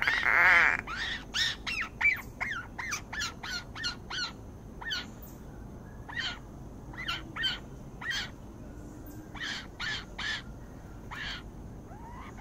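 A bird gives short, repeated sharp calls close by.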